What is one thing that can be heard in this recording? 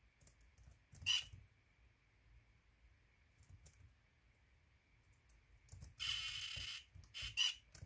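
Short hissing game effects burst from a small laptop speaker.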